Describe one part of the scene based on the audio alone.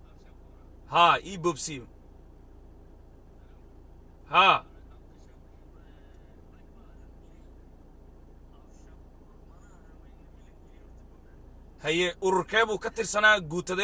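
A middle-aged man speaks into a phone in short bursts, close by.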